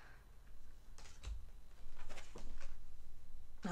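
Playing cards slide and slap together as they are shuffled.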